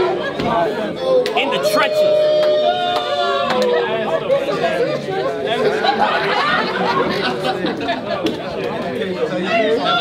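A crowd of young men chatters and calls out nearby.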